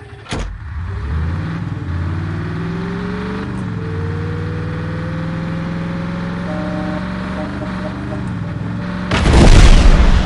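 A tank engine rumbles and whines as it drives and speeds up.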